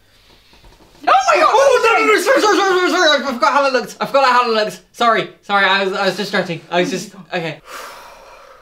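A young woman shrieks and cries out with excitement.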